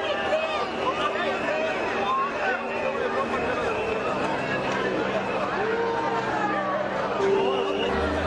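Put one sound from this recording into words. A large crowd shouts and whistles outdoors.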